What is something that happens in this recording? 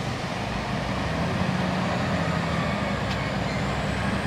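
The diesel train engine grows louder as the train pulls slowly forward.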